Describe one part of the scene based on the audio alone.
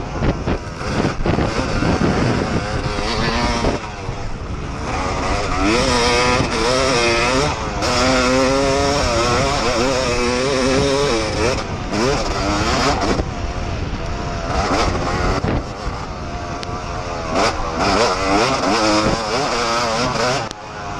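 A dirt bike engine revs and whines up and down close by.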